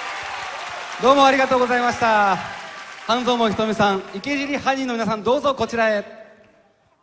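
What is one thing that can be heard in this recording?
A man speaks with animation through a microphone in a large hall.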